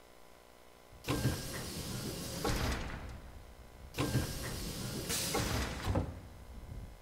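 A heavy metal door grinds open with loud scraping bursts.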